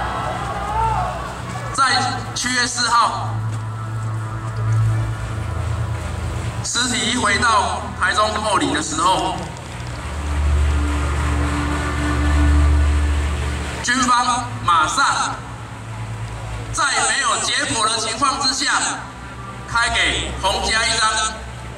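A man speaks with animation through loudspeakers, echoing outdoors.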